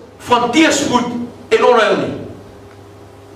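An elderly man speaks forcefully through a headset microphone in a room with some echo.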